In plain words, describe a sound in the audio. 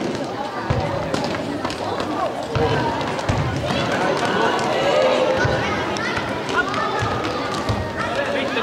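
Children shout and cheer in a large echoing hall.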